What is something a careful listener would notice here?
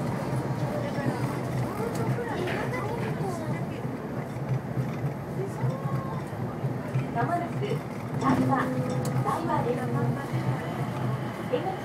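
Train wheels squeal and screech on the rails as the train slows into a station.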